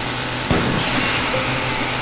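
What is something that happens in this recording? A laser gun fires in short bursts.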